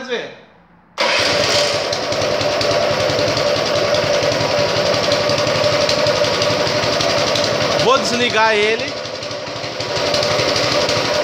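A small petrol engine starts and runs with a steady, loud rattling hum.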